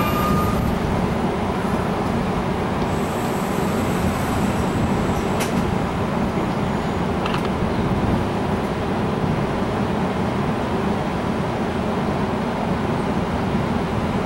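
A train rumbles slowly past close by, its wheels clattering on the rails.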